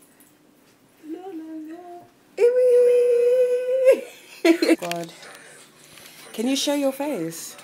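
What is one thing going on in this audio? A young woman speaks in a playful, sing-song voice close by.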